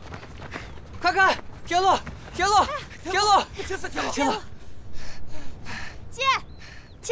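Children shout excitedly.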